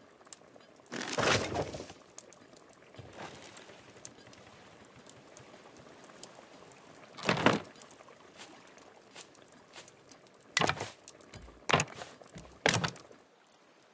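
Wooden boards thud and knock as they are set into place.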